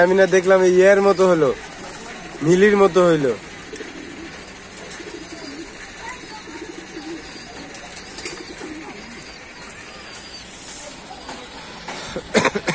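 Pigeons coo softly close by.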